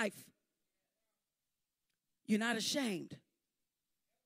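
A woman speaks into a microphone, heard through a loudspeaker, in short phrases.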